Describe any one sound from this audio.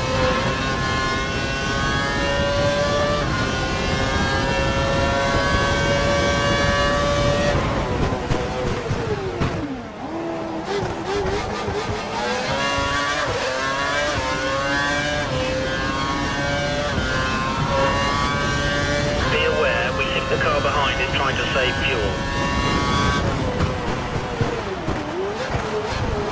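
A racing car engine screams at high revs, dropping in pitch with each gear change and rising again as it speeds up.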